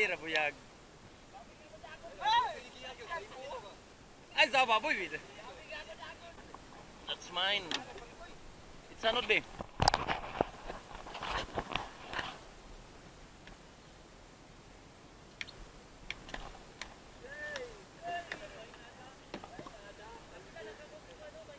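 Men talk and call out to each other with animation nearby outdoors.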